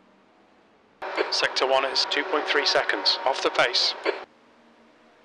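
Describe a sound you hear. A man commentates with animation, heard through an online call.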